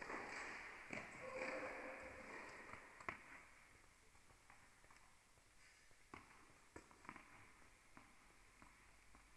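A tennis ball is struck and bounces in a large echoing hall.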